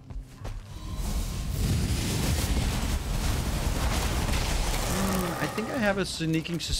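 A fiery blast roars with a loud rushing noise.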